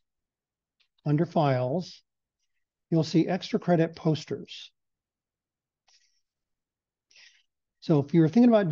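An older man speaks calmly through a headset microphone in an online call, with pauses.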